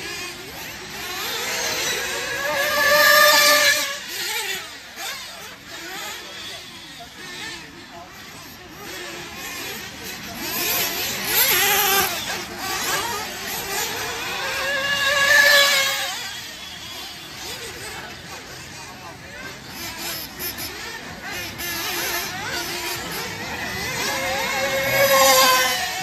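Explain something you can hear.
Small electric motors whine high as toy cars race past, rising and fading with each pass.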